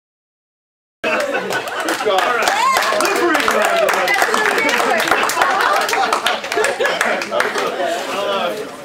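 A crowd of men and women chatter and laugh nearby.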